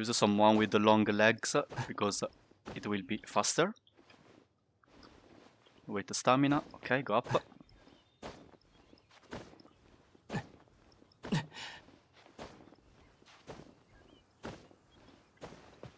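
Hands and feet scrape and scuff while climbing rock.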